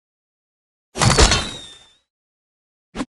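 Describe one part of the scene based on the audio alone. Wooden doors crash and break apart.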